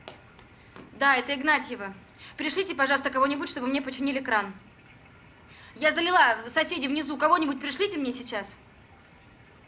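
A young woman talks on a phone with agitation, close by.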